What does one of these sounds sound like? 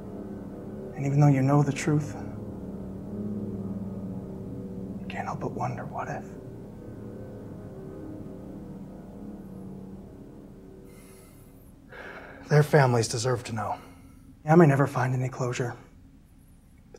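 A young man speaks quietly and tensely nearby.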